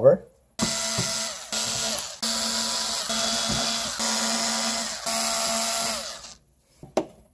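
A cordless electric drill whirs in bursts.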